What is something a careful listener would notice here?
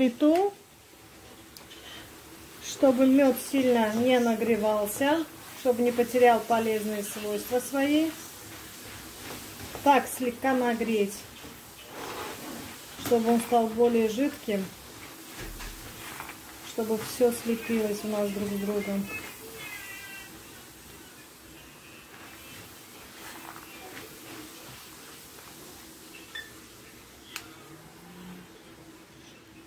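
A spatula stirs and scrapes nuts in a frying pan.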